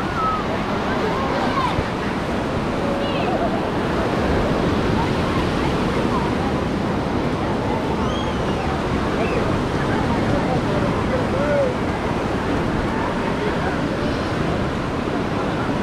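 A crowd of people chatters and shouts all around outdoors.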